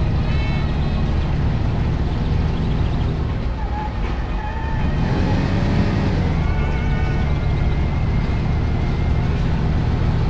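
A car engine hums steadily as it drives along.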